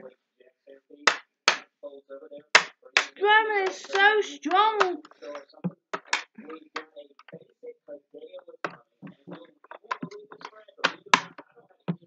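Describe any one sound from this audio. Plastic toy figures knock and clack together.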